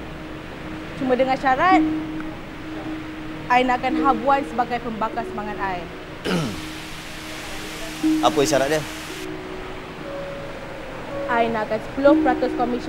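A woman talks with animation nearby.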